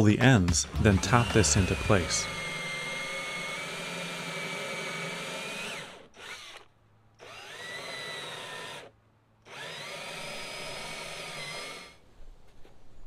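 A cordless drill whirs steadily in bursts.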